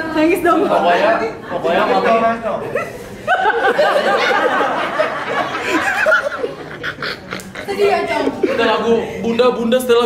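A young man sings loudly close by, in a wavering voice.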